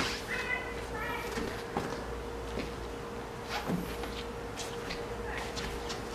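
A cloth rubs softly across a smooth car surface.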